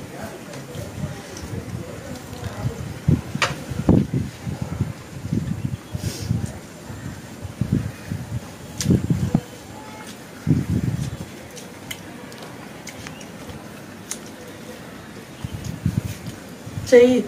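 A woman chews food with loud smacking sounds, close to a microphone.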